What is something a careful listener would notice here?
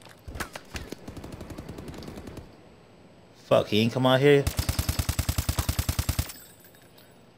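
An automatic gun fires rapid bursts of shots.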